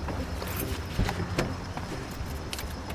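A bag thuds down onto luggage.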